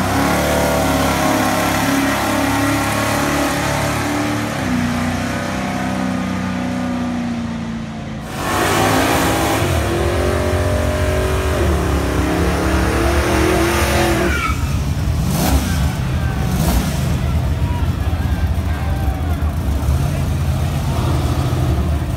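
A powerful car engine roars loudly as it accelerates.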